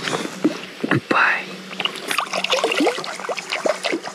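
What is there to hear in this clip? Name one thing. Water splashes as a fish is let go.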